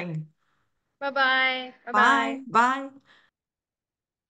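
A young woman speaks cheerfully over an online call.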